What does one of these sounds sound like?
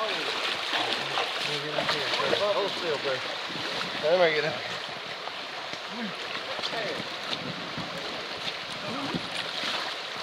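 Shallow river water rushes and babbles over rocks outdoors.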